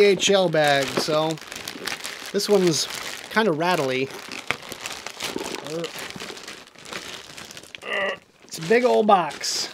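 A plastic package crinkles and rustles as it is torn open.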